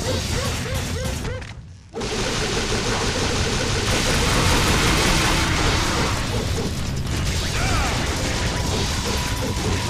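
A sword slashes and clangs in quick strikes.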